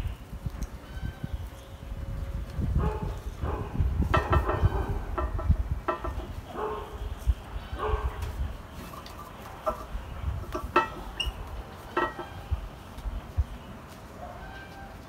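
Leaves and twigs rustle as gloved hands handle a small tree.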